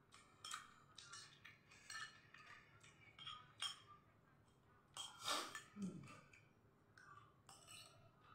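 A metal spoon and fork clink and scrape against a ceramic bowl.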